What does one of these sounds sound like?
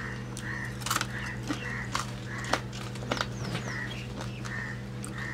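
A man crunches and chews food close by.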